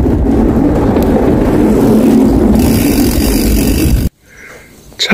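Wind rushes loudly past the microphone while riding a bicycle.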